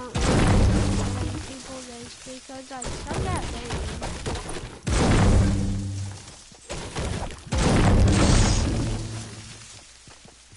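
A pickaxe chops into wood and stone with heavy, booming thuds.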